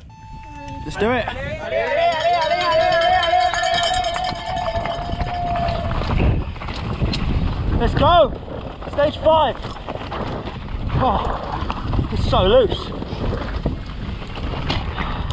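Bike tyres rattle and crunch over a rocky gravel trail.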